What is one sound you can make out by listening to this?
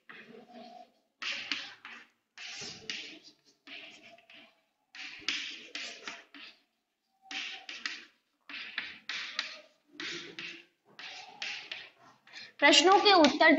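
Chalk taps and scrapes across a chalkboard in short bursts.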